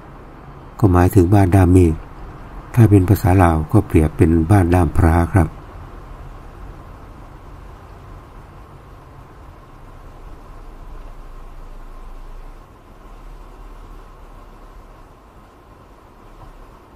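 A car drives along a paved road with a low, steady hum from inside the cabin.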